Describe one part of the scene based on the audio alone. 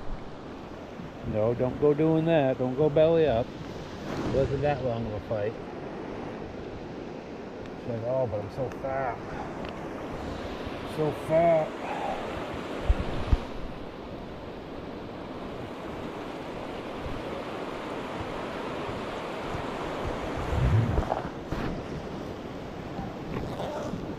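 A river ripples and flows gently.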